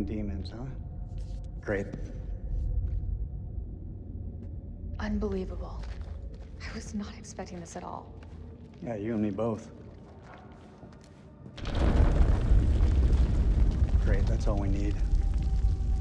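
A young man answers in a calm, dry voice, close by.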